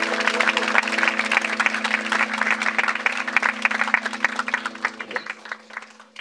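An electric guitar plays loud, droning, distorted notes through an amplifier, then stops.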